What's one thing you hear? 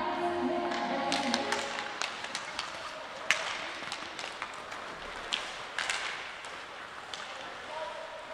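Hockey sticks clack sharply against the puck in a large echoing rink.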